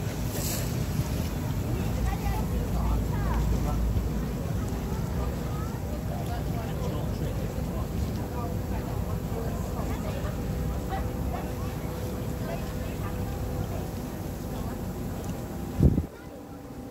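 Water laps and swishes gently outdoors.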